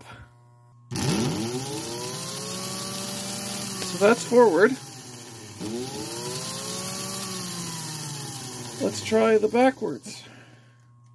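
A small electric motor whirs, speeding up and slowing down twice.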